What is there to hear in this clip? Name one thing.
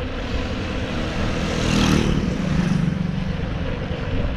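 A motorcycle passes close by with a brief engine roar.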